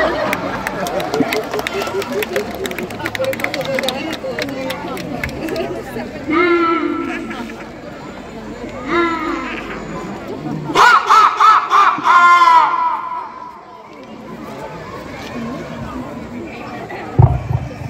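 Music plays loudly over loudspeakers outdoors.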